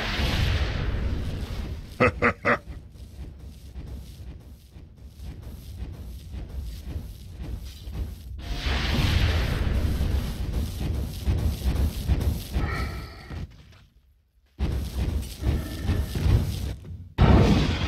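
Game characters' weapons clash and thud.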